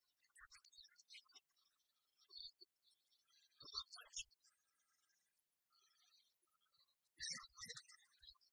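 Short electronic chimes and twinkles play in quick bursts.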